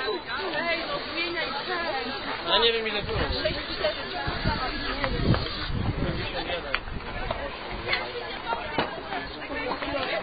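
Adult men talk calmly nearby outdoors.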